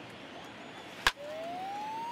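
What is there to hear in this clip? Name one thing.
A bat cracks hard against a baseball.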